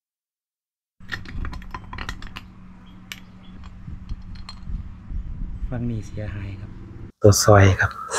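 Metal engine parts clink and knock as they are handled.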